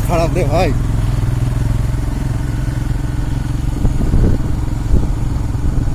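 A motorbike engine hums steadily nearby.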